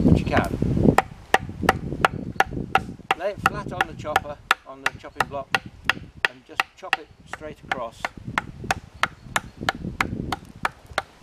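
An axe chops into wood with quick, regular knocks.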